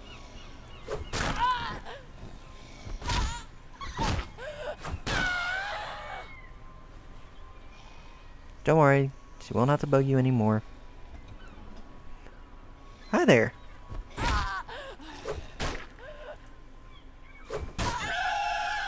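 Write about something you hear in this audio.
A club strikes a zombie with heavy thuds.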